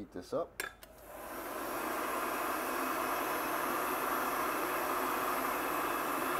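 A heat gun blows with a steady whooshing roar.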